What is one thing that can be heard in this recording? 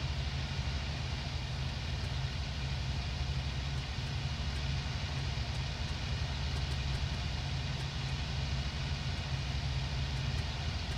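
A propeller engine drones steadily and loudly.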